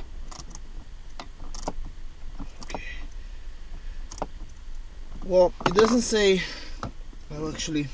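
Plastic parts click and clatter as hands work them loose.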